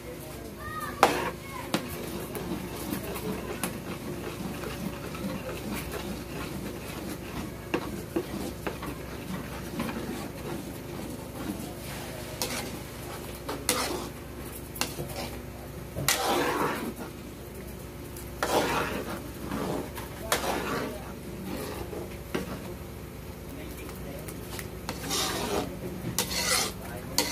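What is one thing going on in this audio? A metal spatula scrapes and stirs thick batter in a metal wok.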